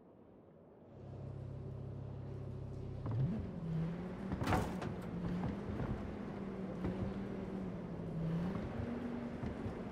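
A car engine hums low and steadily, then revs up as the car drives off.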